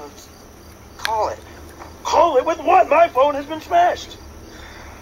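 A young man speaks loudly and with animation, heard through a loudspeaker.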